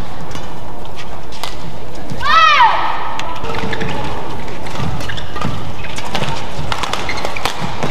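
Shoes squeak on an indoor court.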